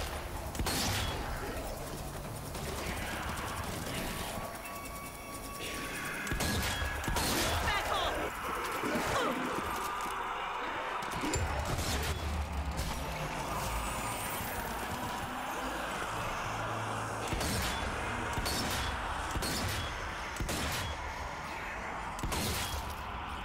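Rifle shots crack loudly, one at a time.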